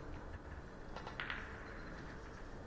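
A man claps his hands a few times.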